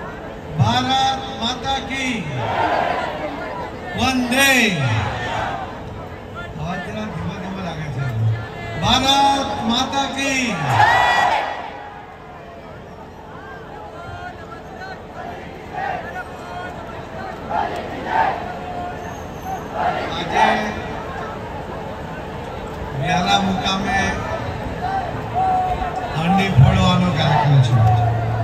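A man speaks loudly and with animation through a loudspeaker.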